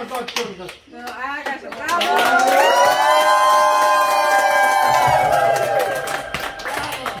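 A small group of people claps close by.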